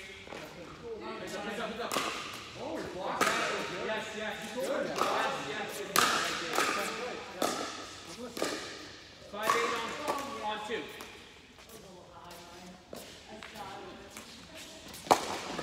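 Paddles strike a ball with sharp pops in a large echoing hall.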